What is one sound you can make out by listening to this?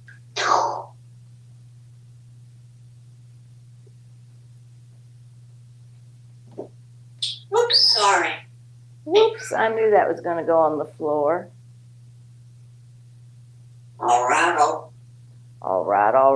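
A parrot chatters and mimics speech in short bursts close by.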